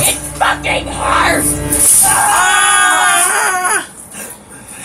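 A woman shrieks loudly and shrilly.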